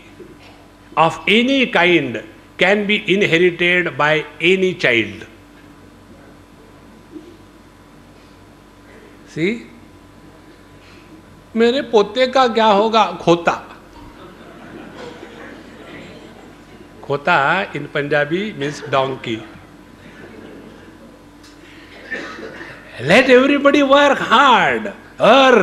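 A man speaks calmly into a microphone, heard through loudspeakers, with pauses between phrases.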